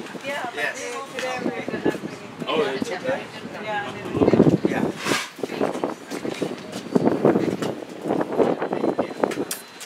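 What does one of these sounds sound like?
Men and women talk and chatter nearby outdoors.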